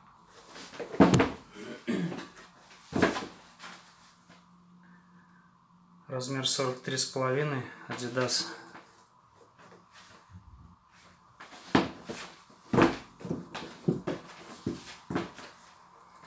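Boots thump down onto a hard surface.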